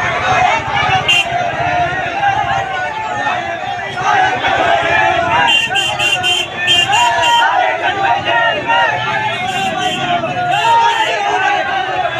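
A man shouts with animation close by.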